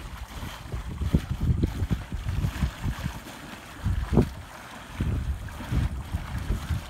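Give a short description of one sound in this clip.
Water gushes and churns steadily up from under a small dock.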